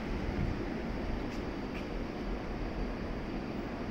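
A train rolls slowly and comes to a stop.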